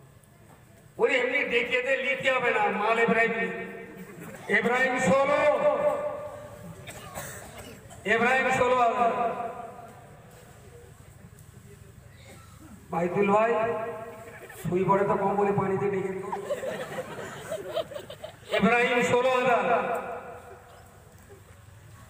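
An elderly man chants loudly and melodiously into a microphone, heard through loudspeakers with echo, in bursts with pauses.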